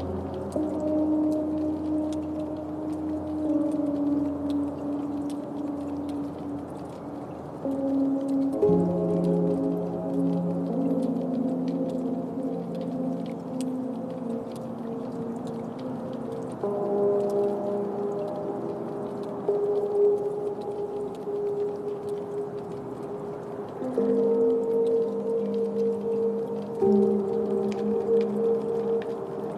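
Electronic synthesizer chords drone and shift in steady layered tones.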